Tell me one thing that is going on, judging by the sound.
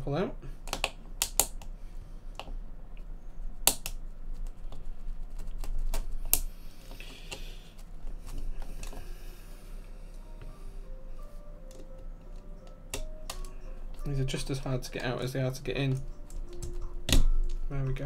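Keyboard keys clack as someone types quickly.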